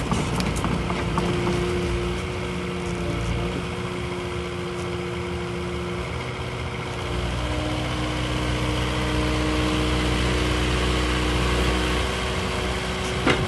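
Hydraulics whine as a machine's arm swings.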